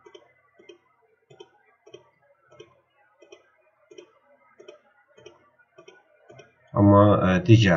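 A computer mouse clicks repeatedly.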